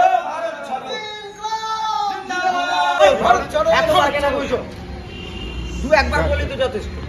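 A group of young people sing together outdoors.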